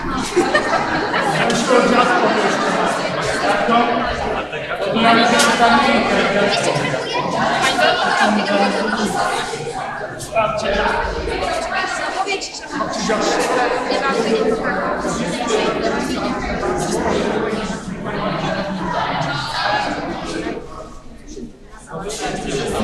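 A crowd of men, women and children chatter over one another in a large echoing hall.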